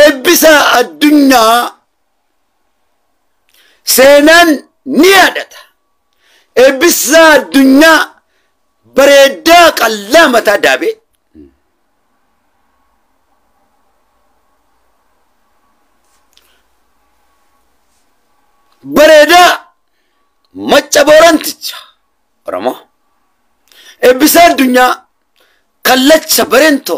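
A man speaks with animation close to a microphone, in bursts with long pauses.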